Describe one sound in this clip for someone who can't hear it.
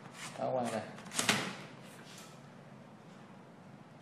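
A disc drive slides out of a laptop with a scrape and a click.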